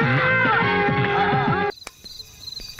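Music plays from a television.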